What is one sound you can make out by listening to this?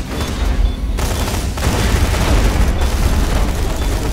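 Rapid gunfire blasts loudly.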